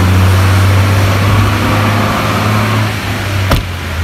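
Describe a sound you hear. A car door shuts with a thud.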